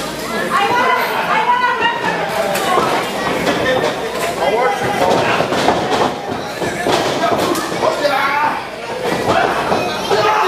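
Wrestlers' bodies thud against the ring mat.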